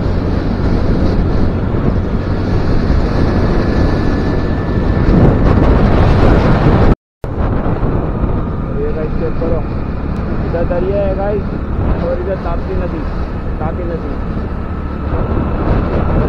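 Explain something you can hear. Wind rushes loudly over the microphone on a moving motorcycle.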